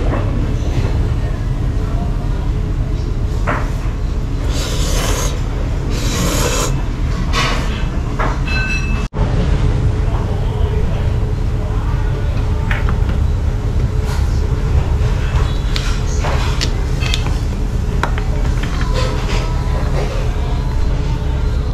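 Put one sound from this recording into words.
A spoon and chopsticks clink against a ceramic bowl.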